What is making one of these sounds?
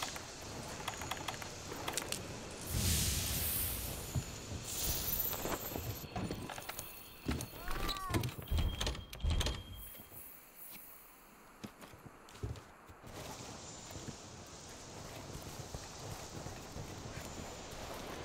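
Footsteps patter on grass and earth.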